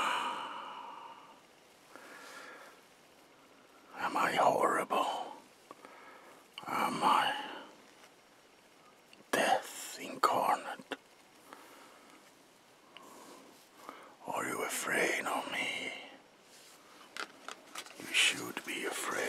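A woman speaks quietly and close by, in short bursts with pauses.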